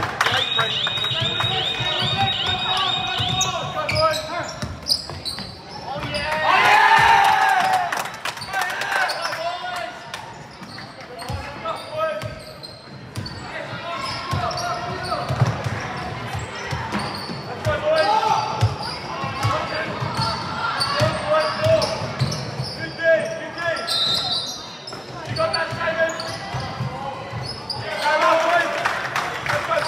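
Spectators chatter and call out.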